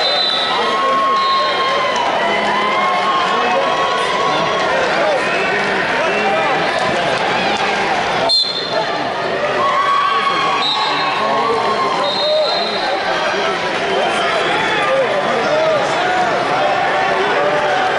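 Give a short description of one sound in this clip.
A whistle blows sharply.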